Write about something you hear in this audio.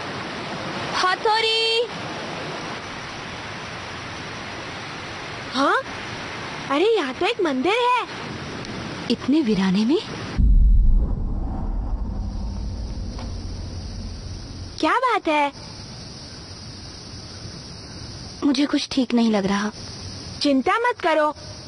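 A young girl talks anxiously.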